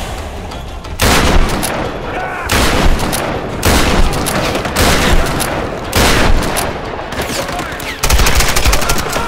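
Shotgun blasts boom loudly, one after another, with a short echo.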